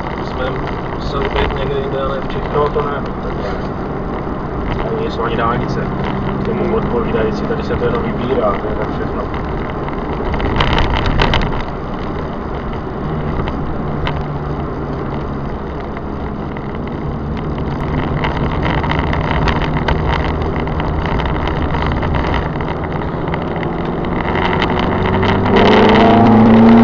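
A car engine hums steadily from inside the car and revs up near the end.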